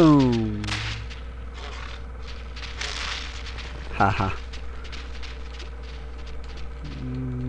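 An energy device hums steadily.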